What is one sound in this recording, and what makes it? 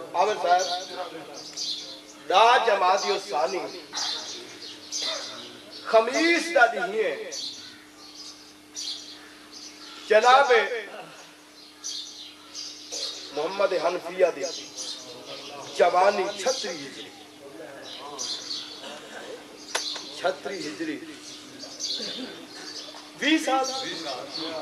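A man speaks with passion through a microphone, his voice echoing in a large room.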